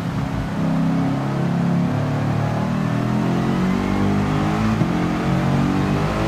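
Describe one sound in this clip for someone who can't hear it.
Tyres hiss on a wet track.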